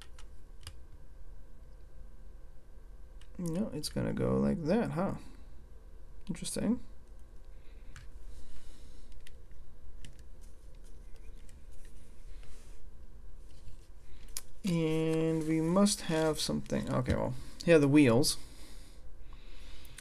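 Plastic toy bricks click and rattle as they are handled.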